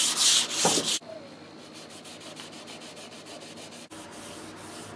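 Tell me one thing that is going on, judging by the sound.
A hand rubs a small pad over wood with soft scraping strokes.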